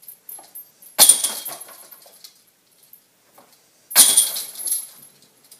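A flying disc crashes into rattling metal chains.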